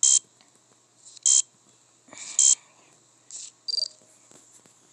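A card reader gives short, sharp error buzzes several times.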